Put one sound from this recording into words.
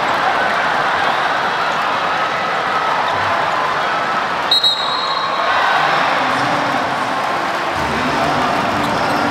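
A large crowd cheers and shouts loudly in an echoing arena.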